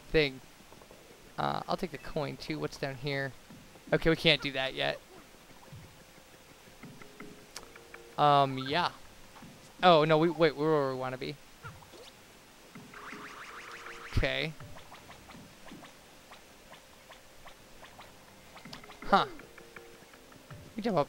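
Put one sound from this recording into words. Cartoonish game sound effects bleep and chirp.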